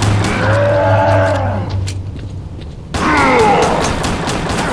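A creature snarls and shrieks close by.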